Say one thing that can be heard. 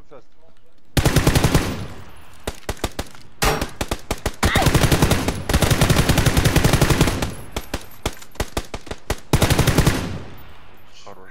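Rapid bursts of automatic gunfire crack loudly and echo.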